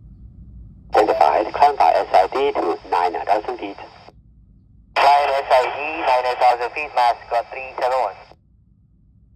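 A man speaks in short bursts through a small radio loudspeaker.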